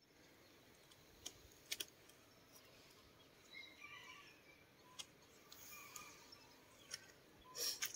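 Bamboo strips click faintly from a distance.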